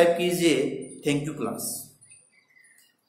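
A man speaks clearly into a close microphone, explaining in a calm, lecturing tone.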